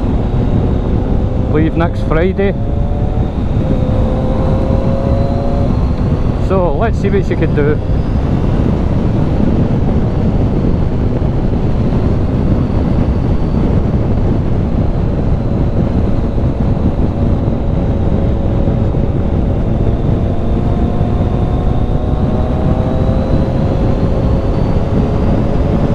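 Wind roars loudly past the rider.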